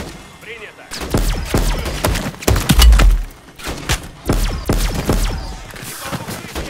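Rapid gunshots fire in bursts with sharp bangs.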